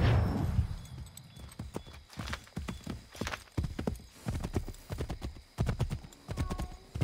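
Hooves thud steadily as a horse gallops.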